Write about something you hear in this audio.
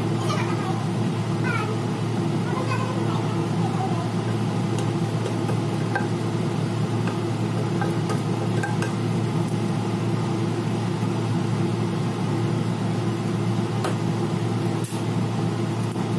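Food sizzles steadily in hot oil.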